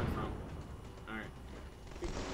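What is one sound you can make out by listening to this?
A man talks quietly into a headset microphone.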